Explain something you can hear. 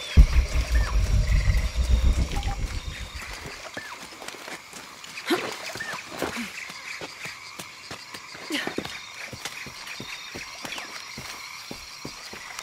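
Footsteps patter quickly over leaves and soft ground.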